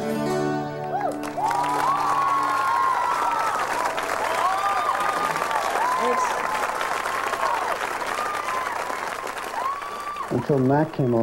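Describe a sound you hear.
Acoustic guitars strum.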